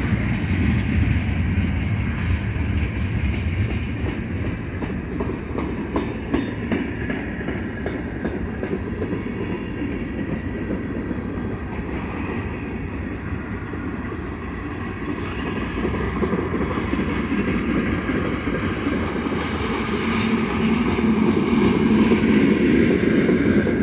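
Steel wheels clack and squeal on the rails.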